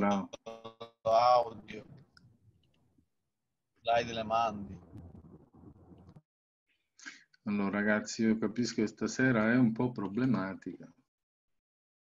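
A middle-aged man speaks calmly through an online call microphone.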